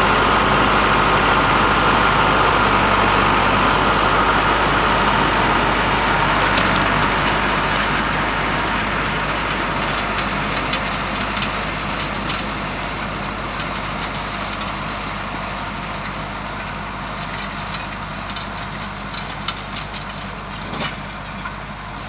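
A tractor engine idles nearby and fades as it moves away.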